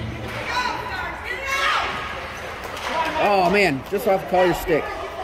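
Young women nearby talk and call out loudly in a large echoing rink.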